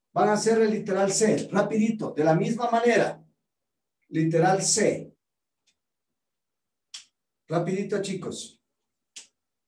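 A middle-aged man speaks calmly close to the microphone, with pauses.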